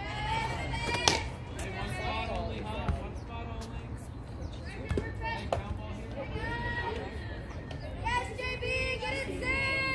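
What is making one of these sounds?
Young women shout and cheer nearby, outdoors.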